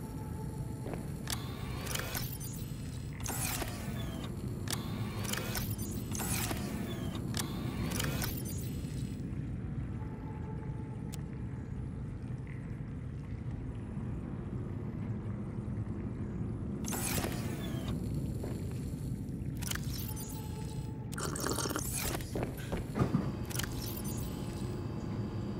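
A metal locker door slides open with a mechanical whoosh.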